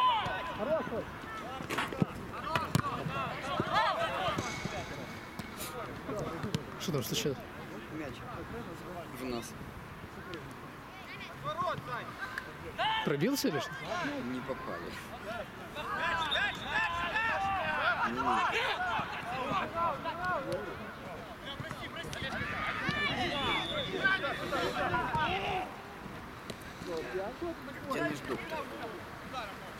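Young men shout and call out to each other across an open field outdoors.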